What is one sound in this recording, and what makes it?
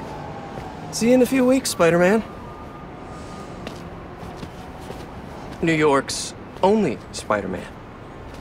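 A young man speaks in a low, steady voice, close by.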